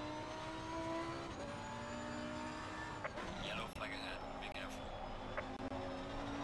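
A racing car engine roars steadily and shifts gears.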